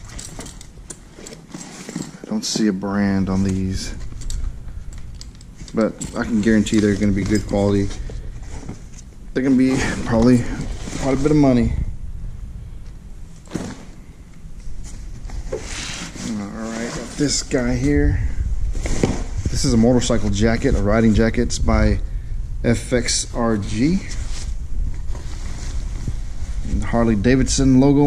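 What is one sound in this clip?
Leather jackets rustle and creak as hands lift them from a cardboard box.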